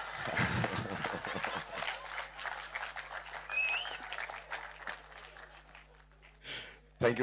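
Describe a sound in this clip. A crowd cheers and claps loudly, then fades.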